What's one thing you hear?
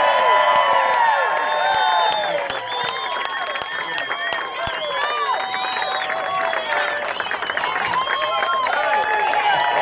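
People in a crowd clap their hands.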